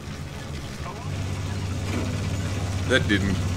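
A tank engine idles with a deep, steady hum.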